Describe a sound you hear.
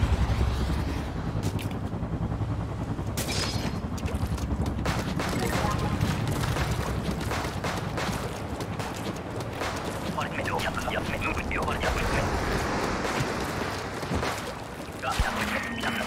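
Ink sprays and splatters with wet squirts.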